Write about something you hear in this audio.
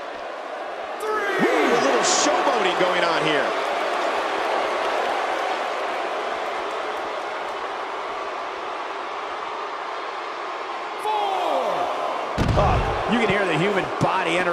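A crowd cheers and shouts loudly in bursts.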